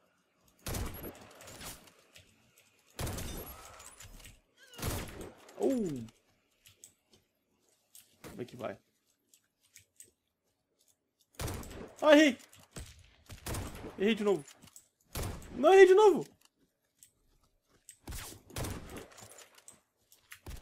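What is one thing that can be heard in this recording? A sniper rifle bolt clicks as it is worked.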